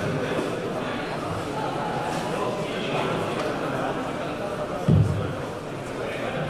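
Two men talk quietly close by.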